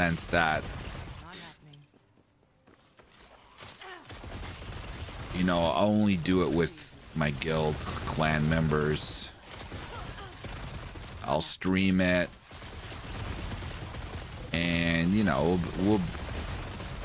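An elderly man talks with animation into a close microphone.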